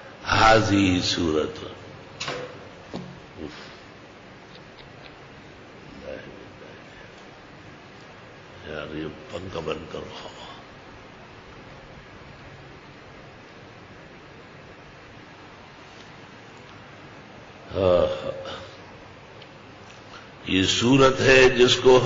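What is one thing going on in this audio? An elderly man speaks with feeling into a microphone, pausing between phrases.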